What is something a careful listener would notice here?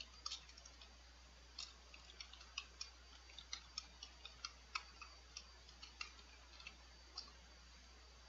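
Keyboard keys click in quick, uneven bursts of typing.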